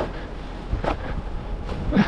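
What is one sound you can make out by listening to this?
A shovel knocks against a wall.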